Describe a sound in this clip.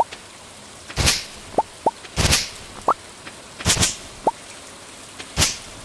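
A scythe swishes through tall grass in short, sharp strokes.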